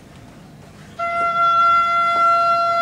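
A clarinet plays a long, steady note.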